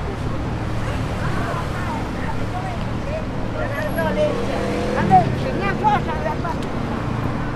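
Men and women talk nearby in passing.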